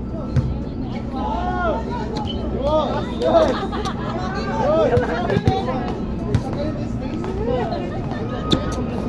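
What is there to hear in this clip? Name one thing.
Young men and women chatter and call out nearby, outdoors.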